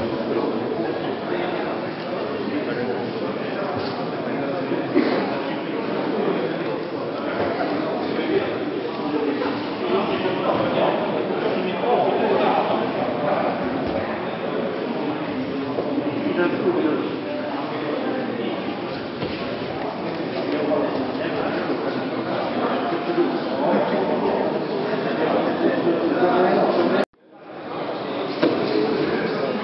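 Many men and women chatter in a large echoing hall.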